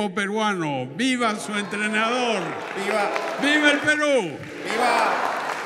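An elderly man speaks loudly with animation into a microphone.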